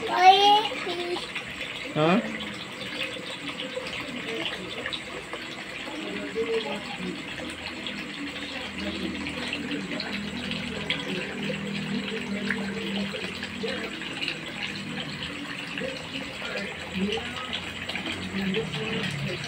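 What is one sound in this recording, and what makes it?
Small air bubbles gurgle softly in water.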